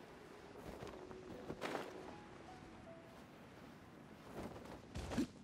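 Wind rushes past as a character glides through the air.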